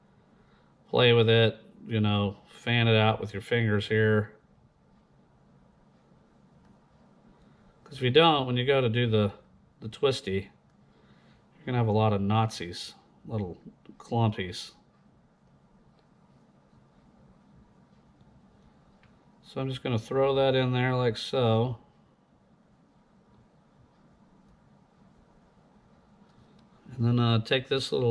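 A man speaks calmly close to a microphone, in short bursts with pauses.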